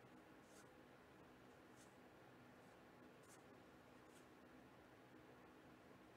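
Trading cards rustle and slide softly as they are shuffled by hand.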